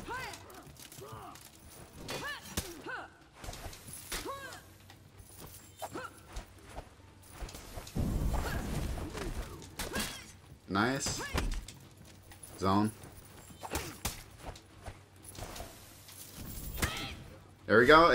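Swords clash and ring with sharp metallic strikes.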